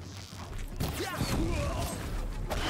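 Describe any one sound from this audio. A single explosion booms.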